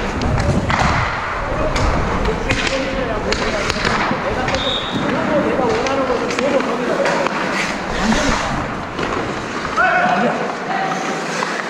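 Young players shout and chatter in a large echoing rink.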